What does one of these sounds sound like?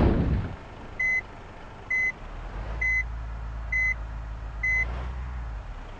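A warning beeper sounds in short repeated beeps.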